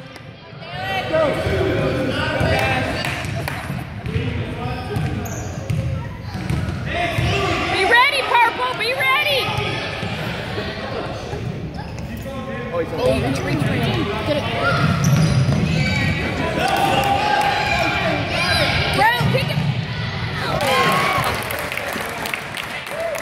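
Parents and children shout and cheer in a large echoing gym.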